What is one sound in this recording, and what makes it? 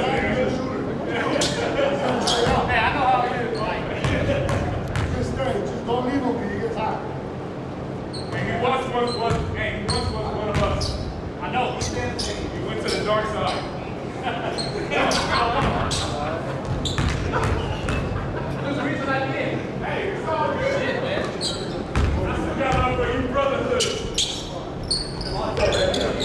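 Young men talk and call out in a large echoing gym.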